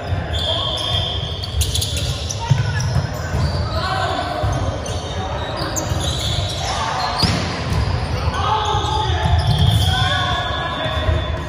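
Young men and women call out and chatter across an echoing hall.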